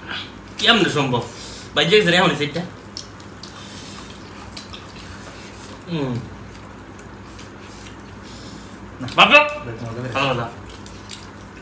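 Hands squelch through rice and curry.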